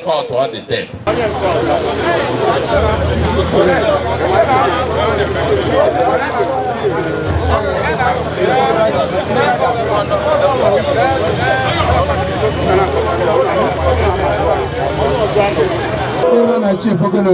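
A motorcycle engine idles and revs.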